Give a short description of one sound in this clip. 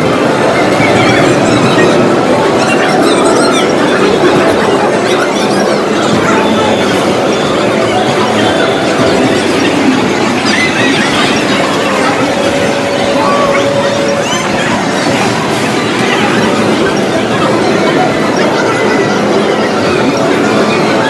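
Arcade game music and effects play loudly from a machine's speakers.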